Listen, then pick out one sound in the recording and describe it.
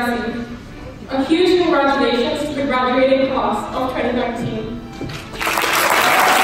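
A young woman speaks into a microphone in a large echoing hall.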